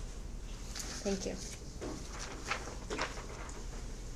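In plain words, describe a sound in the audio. A young woman speaks briefly and softly, away from a microphone.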